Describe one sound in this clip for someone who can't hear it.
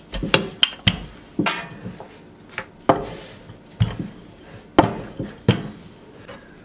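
A wooden rolling pin thuds and rolls over dough.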